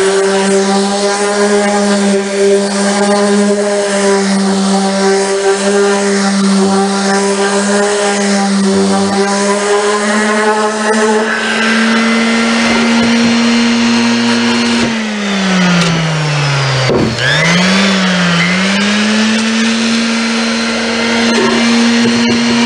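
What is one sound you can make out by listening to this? An electric sander whirs steadily, its pitch briefly dropping and climbing back up.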